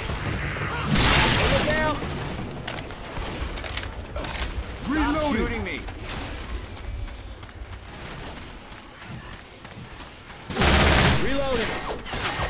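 A gun fires loud bursts of shots.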